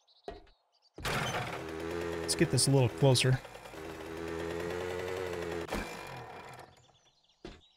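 A motorbike engine hums and revs.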